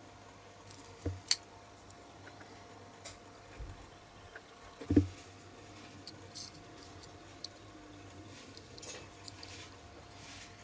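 Small plastic parts click and tap together.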